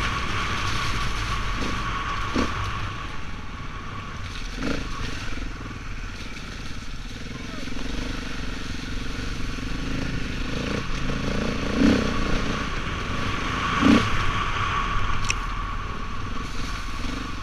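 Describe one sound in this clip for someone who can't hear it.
A motorbike engine drones steadily close by.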